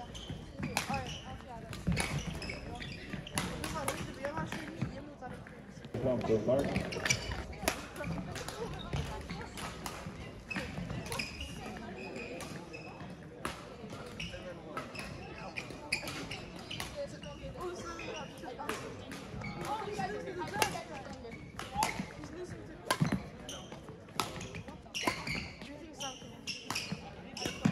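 Shoes squeak and thud on a hard floor in a large echoing hall.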